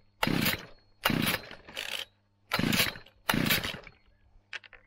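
A small two-stroke engine's starter cord is pulled several times in quick rasping bursts.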